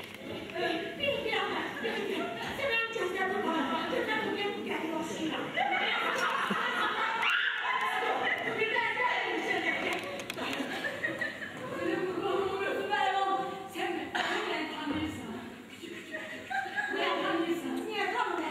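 Women shout and argue loudly with animation.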